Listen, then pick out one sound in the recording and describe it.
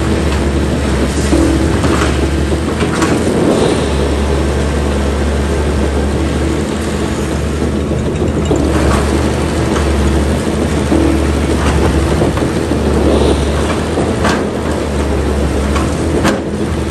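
A diesel excavator engine rumbles steadily nearby.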